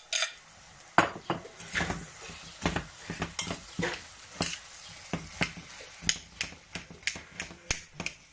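A metal spoon scrapes and clinks against a steel pot.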